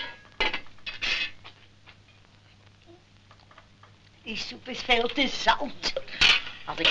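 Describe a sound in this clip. A metal pot lid clanks.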